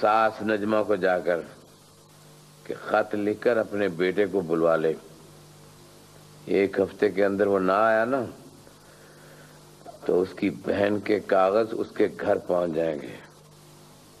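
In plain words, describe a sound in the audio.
A middle-aged man speaks sternly and slowly, close by.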